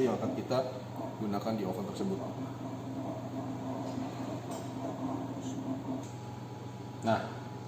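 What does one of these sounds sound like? An oven fan hums steadily.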